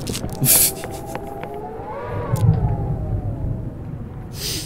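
A young man laughs heartily into a close microphone.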